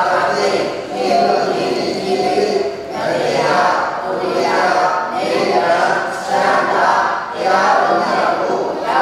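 A group of men and women chant prayers together in unison.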